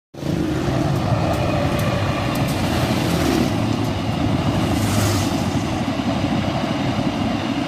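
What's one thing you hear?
A train rumbles past close by, its wheels clattering on the rails.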